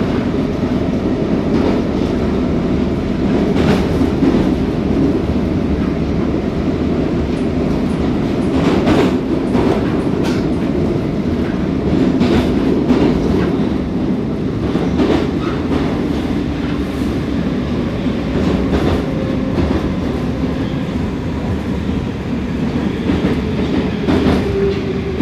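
A metro train rumbles through a tunnel, heard from inside a carriage.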